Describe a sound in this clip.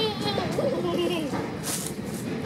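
Train wheels squeal briefly on the rails.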